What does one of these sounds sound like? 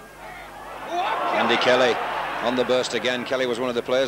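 A large crowd cheers loudly.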